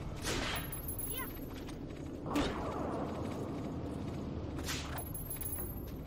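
Swords whoosh and clash in a game fight.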